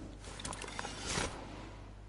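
A video game character's glider whooshes through the air.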